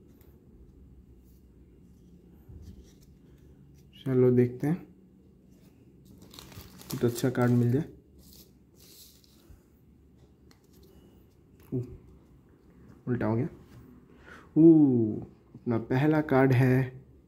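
Playing cards rustle and slap softly as hands shuffle them.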